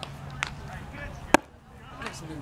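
A baseball smacks into a leather glove.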